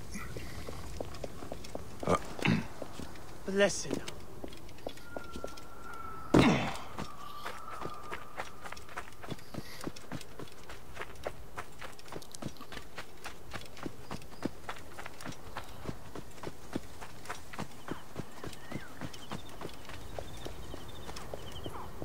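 Footsteps crunch quickly over dirt and rock.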